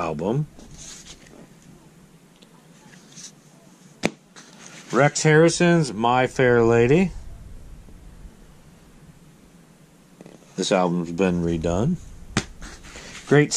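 Cardboard record sleeves rustle and slide as they are flipped through by hand.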